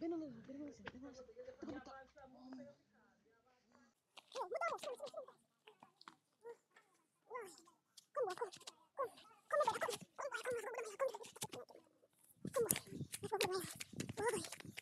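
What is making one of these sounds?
Young boys talk and call out with animation close by, outdoors.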